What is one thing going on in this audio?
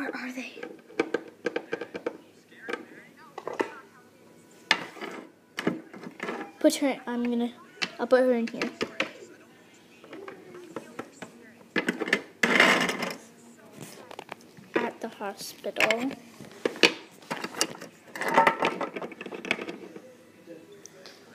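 Small plastic toys knock against a hard floor.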